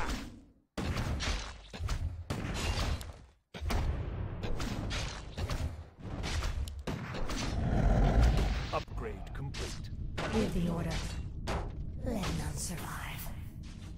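Magic spells crackle and clash in a fight.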